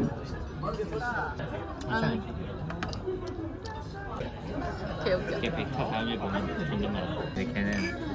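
Several men and women chat in a busy room nearby.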